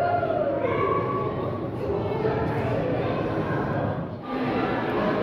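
A penguin brays loudly.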